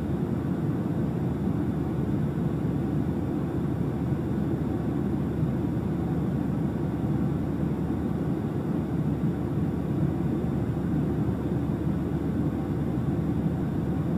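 A small plane's engine drones steadily from inside the cabin.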